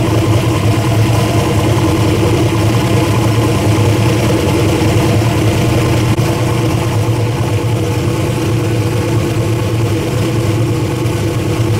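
An engine idles steadily with a low, even rumble.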